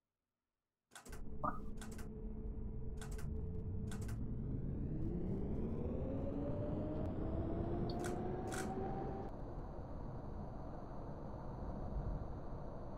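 An electric tram motor hums and whines, rising in pitch as the tram speeds up.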